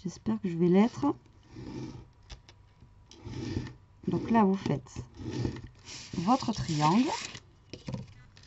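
A pointed tool scrapes along paper, scoring it against a metal ruler.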